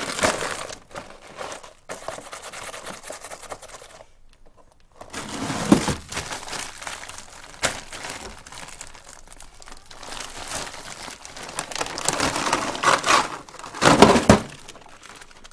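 A freezer drawer slides and rattles.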